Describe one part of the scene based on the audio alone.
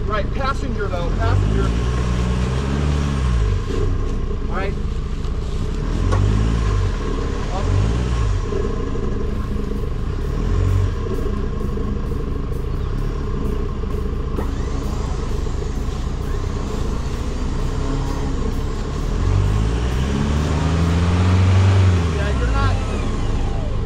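A truck engine revs in bursts, rising and falling in pitch.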